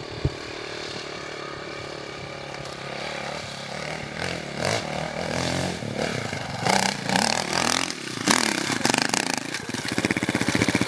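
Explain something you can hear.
A dirt bike engine revs and roars as it climbs a hill.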